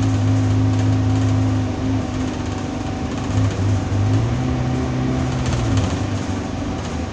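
A bus engine hums and drones steadily.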